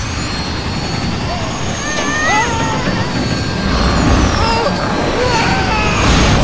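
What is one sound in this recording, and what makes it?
A small flying machine's engine whirs and hums.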